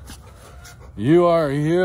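A dog howls loudly.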